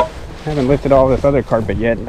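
A shovel scrapes against dry soil.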